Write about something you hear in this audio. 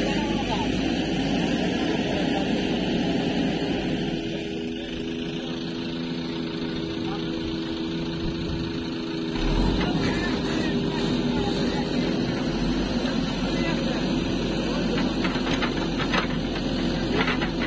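A digger bucket scrapes and knocks against dirt and roots.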